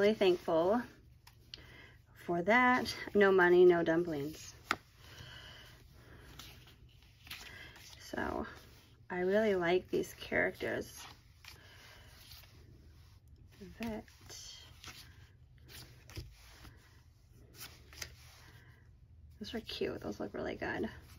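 Sheets of paper rustle and flap as hands flip through them.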